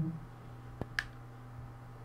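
Snooker balls click against each other.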